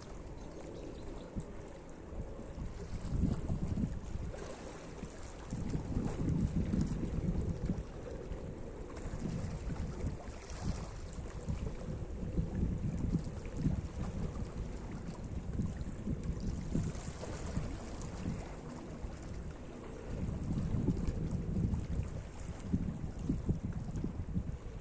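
Small waves lap gently against rocks on a shore.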